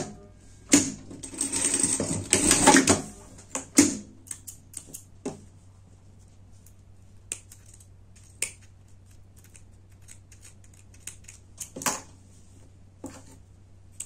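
Fabric rustles and crinkles as it is handled.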